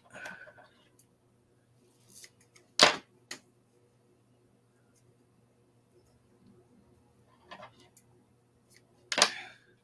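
Small scissors snip.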